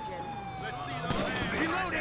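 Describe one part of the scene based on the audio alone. Gunshots crack in a quick burst.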